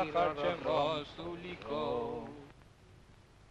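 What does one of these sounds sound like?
A man speaks urgently close by.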